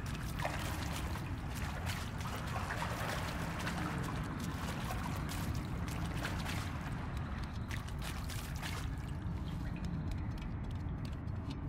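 Footsteps splash and tread on wet ground.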